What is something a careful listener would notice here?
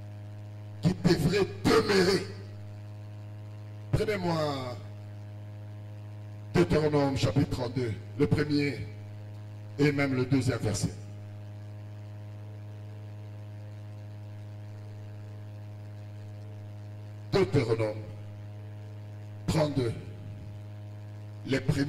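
A man speaks into a microphone in short bursts with pauses, heard through a loudspeaker.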